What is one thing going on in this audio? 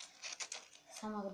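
A young girl speaks briefly and softly, close by.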